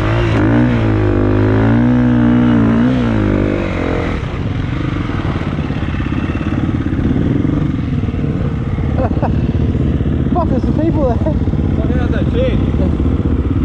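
A dirt bike engine revs loudly up close, then drops to a steady idle.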